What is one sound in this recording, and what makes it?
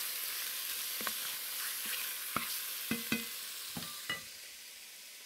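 A wooden spoon knocks against a pot.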